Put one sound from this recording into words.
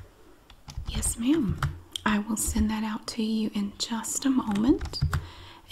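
A woman speaks calmly into a headset microphone.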